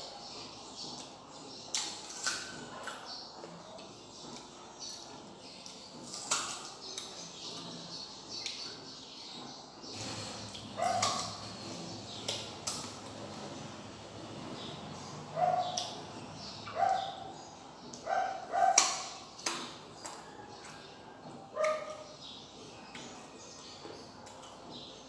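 A young woman chews loudly with smacking sounds.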